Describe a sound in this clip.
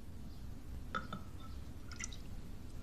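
A ladle clinks against a clay pot.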